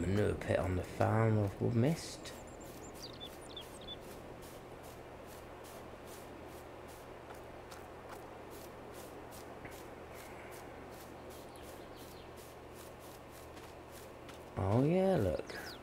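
Footsteps swish through grass at a steady walking pace.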